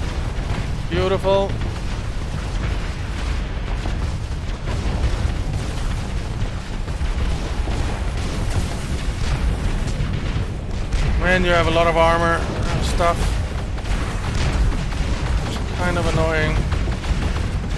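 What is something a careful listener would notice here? Spaceship lasers fire in rapid bursts.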